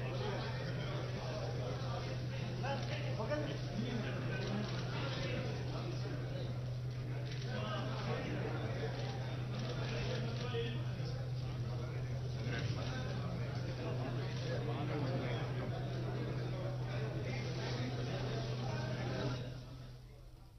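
A crowd of men chatters and murmurs close by.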